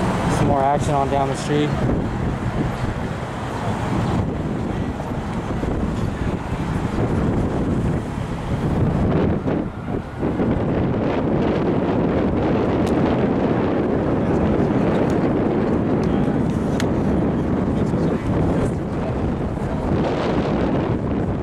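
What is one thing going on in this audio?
Car traffic passes on a city street.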